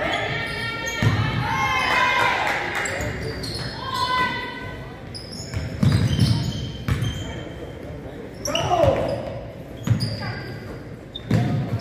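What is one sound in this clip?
A basketball bounces with hollow thuds in an echoing hall.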